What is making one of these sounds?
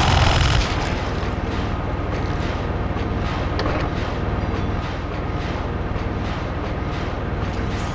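Footsteps thud in a steady rhythm.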